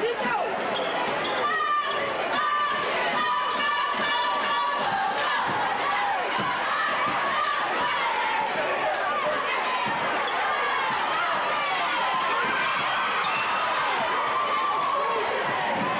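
A basketball thumps on the floor.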